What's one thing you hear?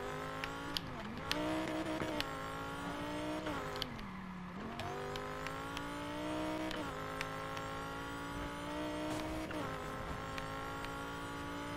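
A sports car engine roars at high revs, shifting gears and revving up again.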